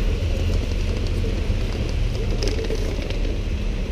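A rolling suitcase rattles over cobblestones.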